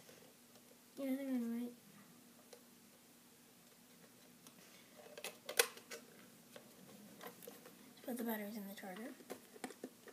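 A boy speaks briefly, close by.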